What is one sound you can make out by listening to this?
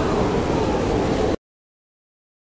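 Heavy rain pours down steadily and then stops abruptly.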